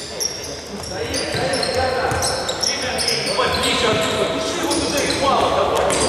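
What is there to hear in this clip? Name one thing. Young men shout to each other across an echoing hall.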